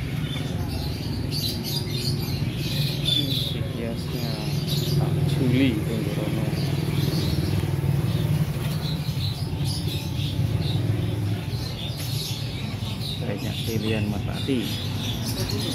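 Pigeons coo softly and steadily close by.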